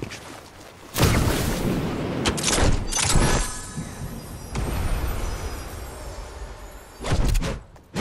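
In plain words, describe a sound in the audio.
Wind rushes loudly while gliding down through the air.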